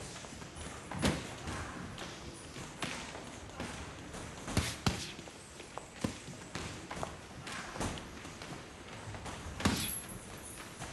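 Gloves thump against a heavy punching bag.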